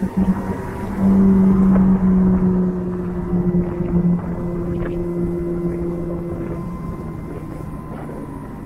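A sports car engine roars loudly nearby.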